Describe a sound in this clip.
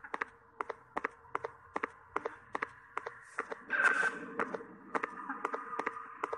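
Footsteps tap steadily on a hard floor at a brisk walking pace.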